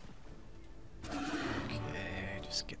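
A magical spell bursts with a shimmering whoosh.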